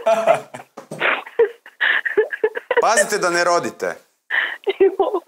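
A man laughs helplessly.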